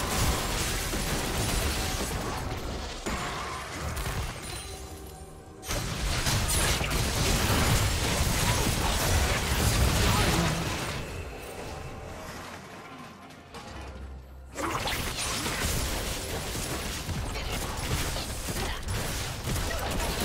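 Game spell effects crackle and whoosh in a busy fight.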